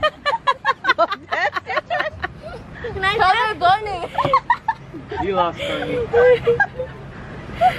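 Young girls laugh and squeal excitedly close by.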